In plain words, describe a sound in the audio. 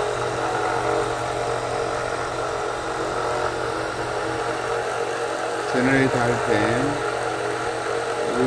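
A small electric motor hums steadily.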